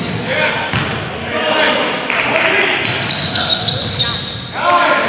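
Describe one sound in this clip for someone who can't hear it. A basketball clangs off a rim in an echoing gym.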